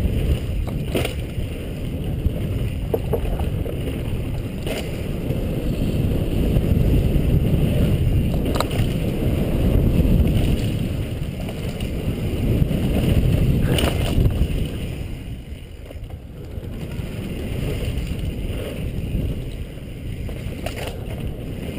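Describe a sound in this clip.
A bicycle frame rattles and clanks over bumps.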